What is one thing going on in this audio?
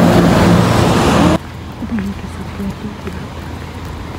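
A car drives past on a wet road.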